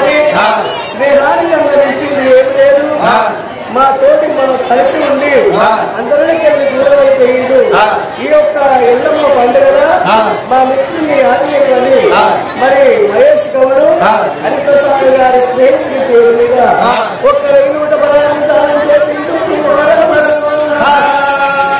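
A man sings in a high, strained voice through a microphone.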